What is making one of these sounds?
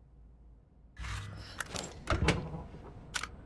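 A heavy storage box lid thuds and clatters shut.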